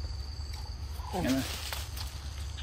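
A baby monkey squeals shrilly, close by.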